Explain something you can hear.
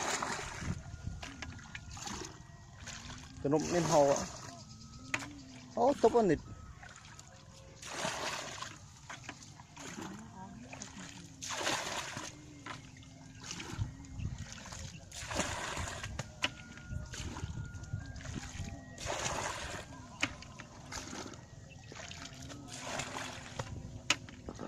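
Water splashes as a bucket scoops and tips it out, again and again.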